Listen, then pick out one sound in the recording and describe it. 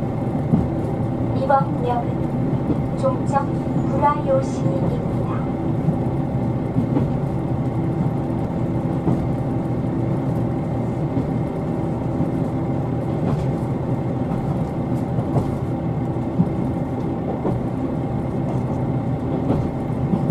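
A vehicle engine hums steadily with a low rumble from inside a moving bus or train.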